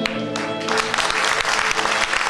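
A small ensemble of strings and flute holds a final chord, then stops.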